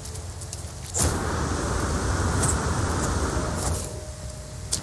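A jetpack roars in a short burst.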